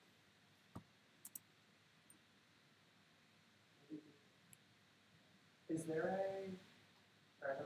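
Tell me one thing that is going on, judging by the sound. A game plays short clicks and chimes as cards are picked.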